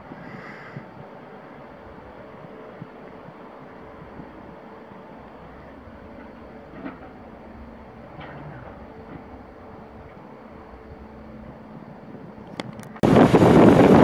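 A train rolls slowly and quietly in the distance.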